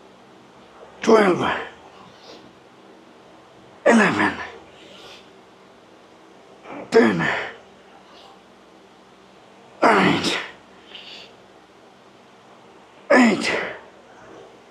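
A man grunts loudly with effort, again and again.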